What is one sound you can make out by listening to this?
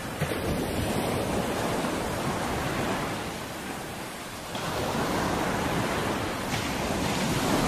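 Waves wash and foam up onto a shore.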